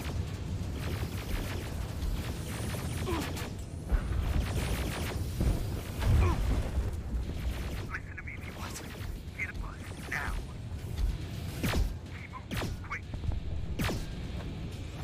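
A metal robot clanks with heavy footsteps.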